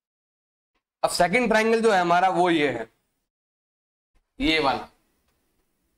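A man speaks clearly close to a microphone, in short bursts.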